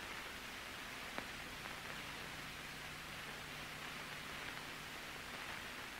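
Paper rustles softly as it is folded and handled.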